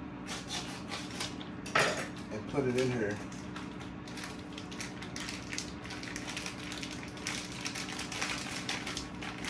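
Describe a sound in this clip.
Plastic packaging crinkles and rustles in someone's hands.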